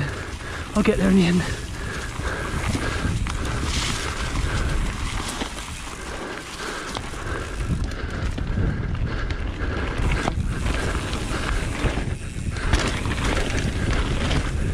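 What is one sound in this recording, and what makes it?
Bicycle tyres roll and crunch over a dry, leafy dirt trail.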